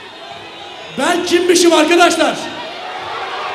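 A man speaks loudly into a microphone, heard through loudspeakers in a large echoing hall.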